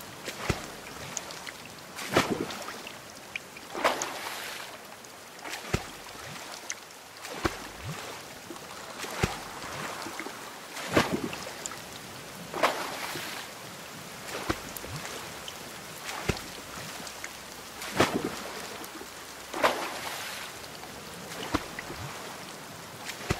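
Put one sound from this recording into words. A wooden oar splashes and swishes through water in a steady rowing rhythm.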